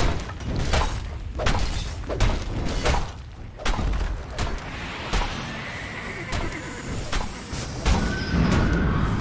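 Spell blasts and weapon hits crack and thud in a fast-paced fight.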